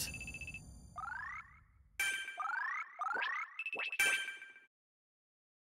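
Bright electronic chimes sweep upward again and again as a score tallies up, then stop.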